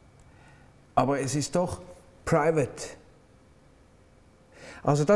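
A man speaks calmly and expressively close to a microphone.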